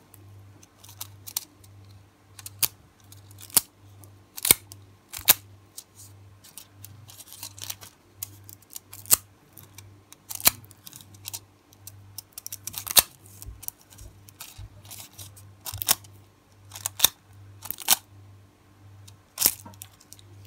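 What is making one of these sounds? Thin foil crinkles and crackles in short bursts against a fingernail.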